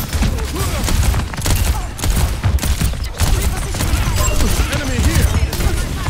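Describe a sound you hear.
A rapid-firing gun shoots in bursts with loud, heavy blasts.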